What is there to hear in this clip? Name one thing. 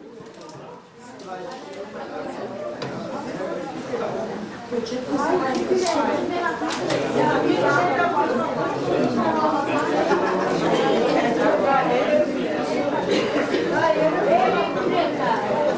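A crowd of men and women chatter loudly all around, close by.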